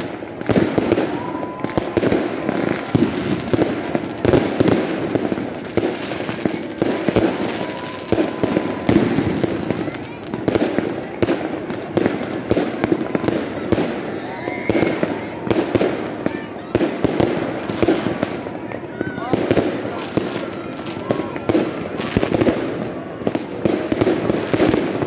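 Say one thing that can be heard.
Fireworks bang and crackle rapidly overhead outdoors.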